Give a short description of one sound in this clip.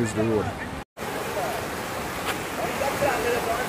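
A river rushes loudly over rocks.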